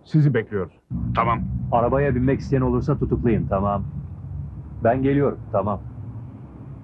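A man talks into a car phone.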